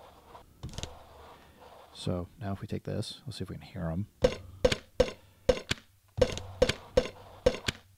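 A drum machine plays punchy electronic drum hits in a steady beat.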